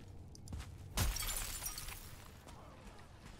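A magical blast bursts with a rushing hiss.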